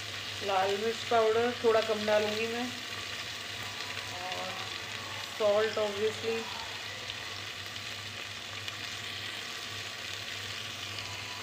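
A metal spatula scrapes and stirs vegetables in a metal pot.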